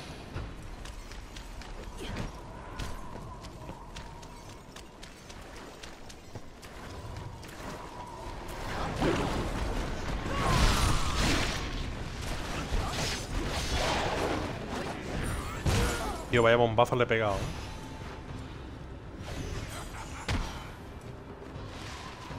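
Blades slash and strike with sharp, heavy impacts.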